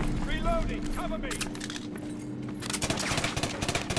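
A pistol's magazine clicks and rattles as it is reloaded.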